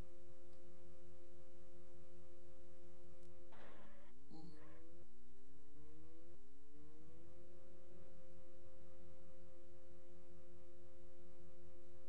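A racing car engine hums steadily, its pitch rising through gear changes.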